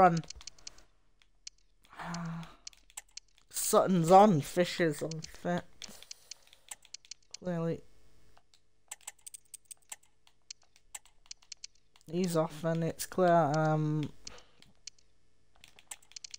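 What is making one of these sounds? Soft menu clicks tick as a selection moves.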